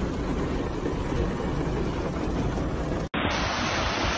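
Rain patters on a window.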